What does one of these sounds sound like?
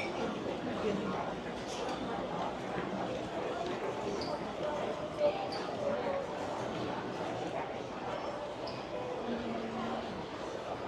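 A crowd murmurs and chatters indoors.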